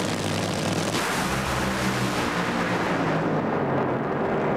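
Two drag racing cars launch with a thunderous roar.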